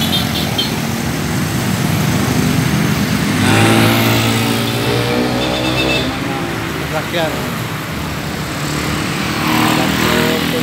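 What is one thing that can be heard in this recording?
Motorbike engines hum and buzz past on a busy road.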